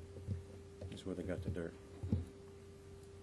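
An older man speaks briefly into a microphone.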